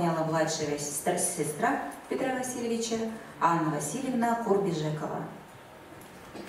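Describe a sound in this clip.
A young woman speaks calmly through a microphone in a large echoing hall.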